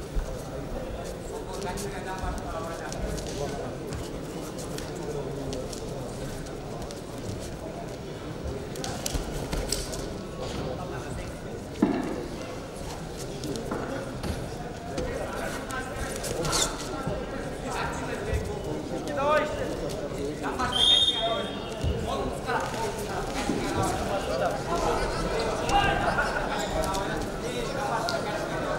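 Wrestlers' feet thud and shuffle on a mat.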